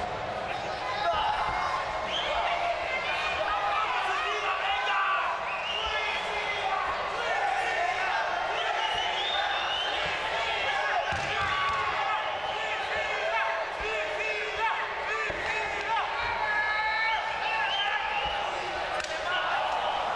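A crowd of spectators shouts and chants loudly in a large echoing hall.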